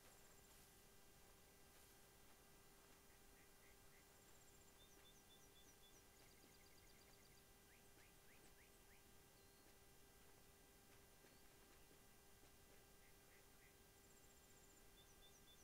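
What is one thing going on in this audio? Footsteps crunch softly on a dirt path.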